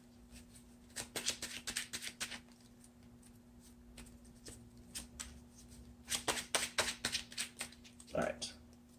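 Cards riffle and flick quickly in hands.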